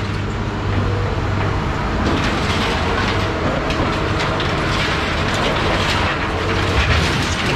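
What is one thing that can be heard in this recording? A heavy machine engine rumbles steadily.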